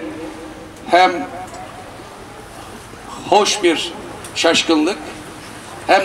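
A middle-aged man speaks into a microphone outdoors, in short bursts with pauses.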